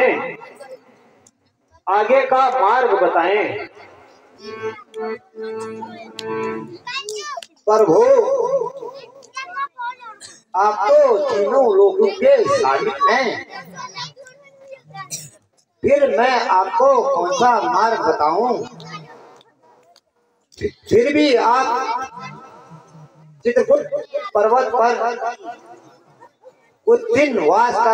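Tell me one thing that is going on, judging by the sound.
A man declaims loudly in a sing-song voice through a loudspeaker, with echo.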